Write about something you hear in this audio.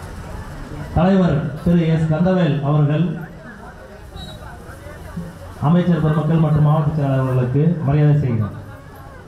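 A man speaks loudly and with animation over a loudspeaker.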